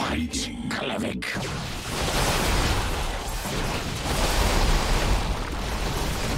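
Game units clash in battle with rumbling, crackling noise.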